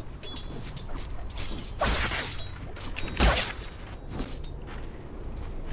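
Swords clash and strike in quick fighting.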